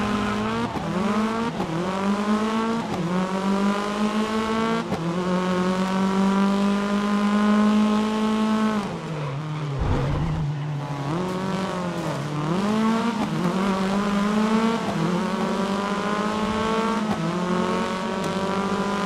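A racing car engine roars loudly, rising in pitch through each gear and dropping sharply at each gear change.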